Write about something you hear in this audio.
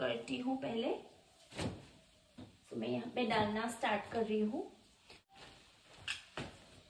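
Clothes rustle as they are packed into a suitcase.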